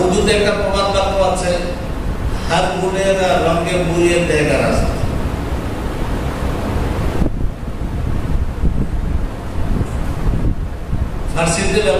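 A man preaches with feeling into a microphone in a reverberant hall.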